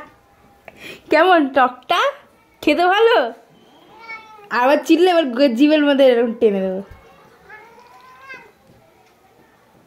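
A cat meows loudly and repeatedly close by.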